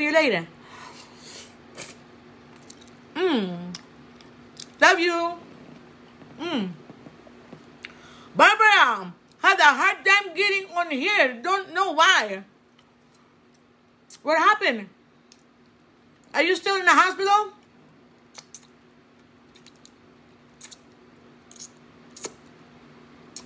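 A woman chews and smacks her lips while eating.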